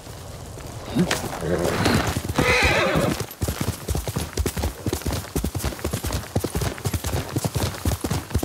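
A horse's hooves pound rapidly over grass.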